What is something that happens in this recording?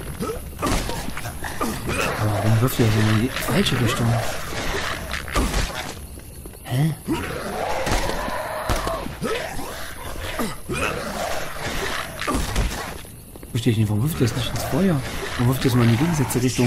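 Heavy punches and kicks land with thuds.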